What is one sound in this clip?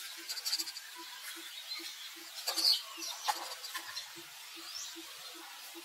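A monkey shuffles over dry leaves on the ground.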